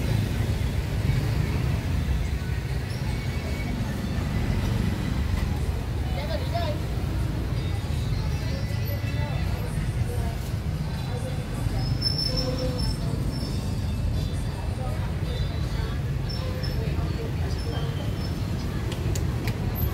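Women chatter faintly in the background.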